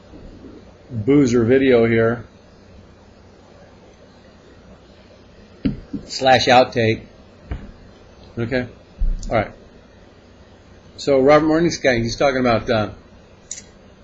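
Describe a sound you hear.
An elderly man speaks close to a microphone in a relaxed, chatty way.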